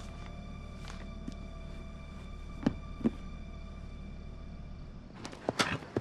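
Paper rustles as a book is handled.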